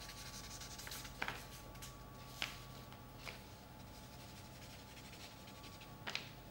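A pen scratches and taps on paper close by.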